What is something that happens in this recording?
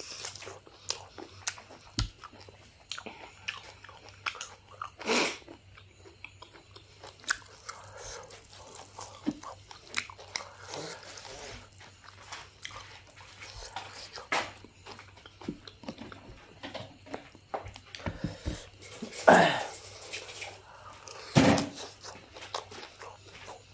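A young man tears and pulls at cooked meat with his hands.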